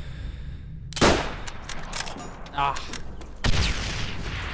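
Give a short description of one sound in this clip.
A rifle fires loud sharp shots.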